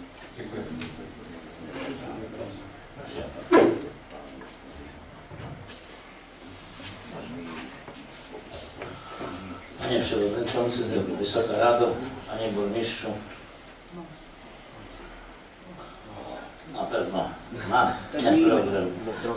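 A man speaks calmly through a microphone in a large room with some echo.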